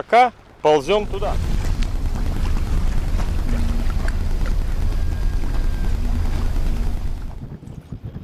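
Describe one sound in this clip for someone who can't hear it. Wind rumbles across the boat.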